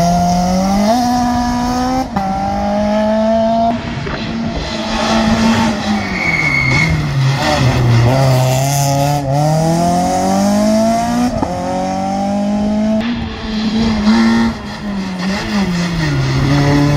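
Rally car engines rev hard and shift down through a hairpin bend.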